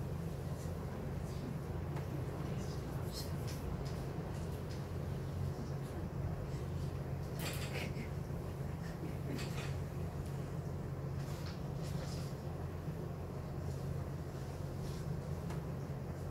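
An elderly woman reads aloud softly, close by.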